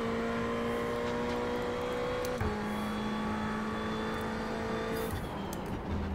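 A racing car engine roars steadily at high revs and shifts gear with a sudden jump in pitch.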